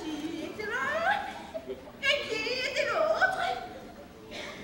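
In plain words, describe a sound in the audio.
A young woman wails in long, sliding vocal tones.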